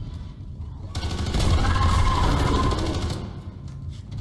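A gun fires with a loud roaring burst.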